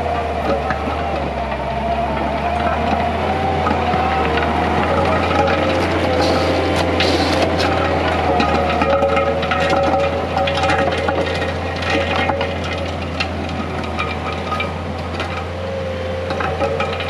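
Dirt and stones crunch and scrape under a rake attachment.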